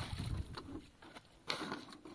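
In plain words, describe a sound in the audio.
Water splashes as it is poured from a jug.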